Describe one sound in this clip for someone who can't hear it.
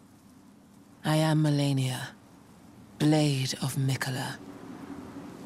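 A woman speaks slowly and calmly, close by.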